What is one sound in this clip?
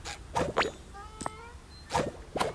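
Small bright chimes ring as items are collected.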